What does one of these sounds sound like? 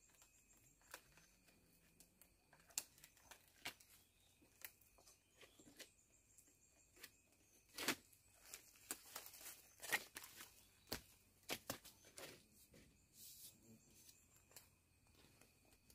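Bamboo knocks and creaks as a pole is handled.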